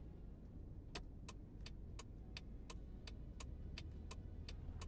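A car's turn signal ticks evenly.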